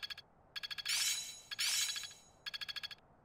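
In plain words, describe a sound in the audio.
Bright game chimes ring out twice.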